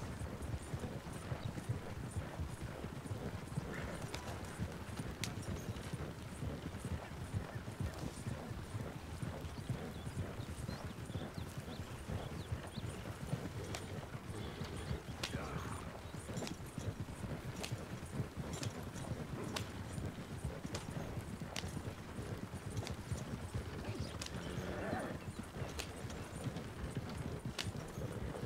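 Horse hooves clop steadily on dirt.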